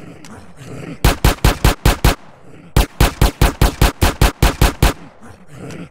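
Punches land with heavy thuds in two quick bursts.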